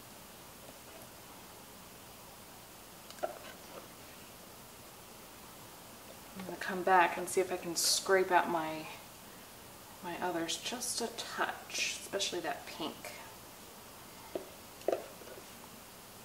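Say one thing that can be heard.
Thick liquid pours and plops softly.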